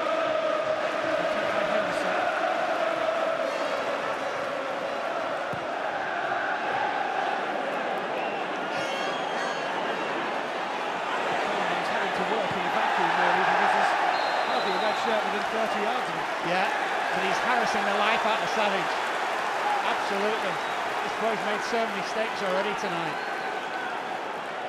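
A large stadium crowd chants and roars.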